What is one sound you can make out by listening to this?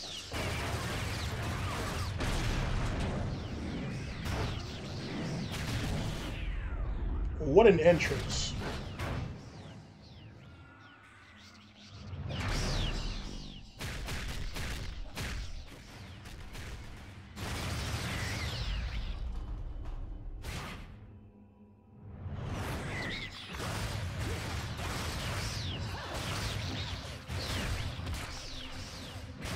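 Loud crashes and booming impacts ring out.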